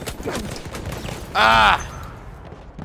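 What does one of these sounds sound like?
An explosion booms as an aircraft crashes.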